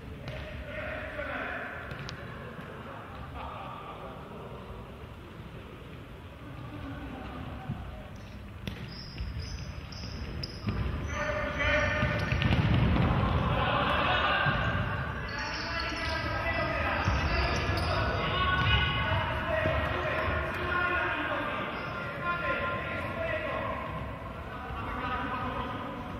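Sneakers squeak on a hard court in an echoing hall.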